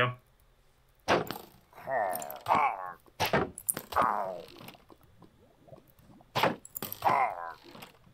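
A crossbow fires arrows in a game, with sharp twangs.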